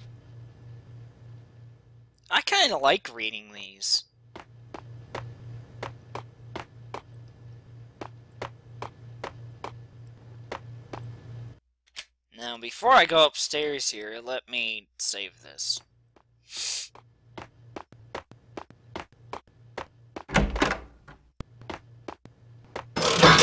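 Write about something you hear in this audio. Footsteps run quickly across a hard floor.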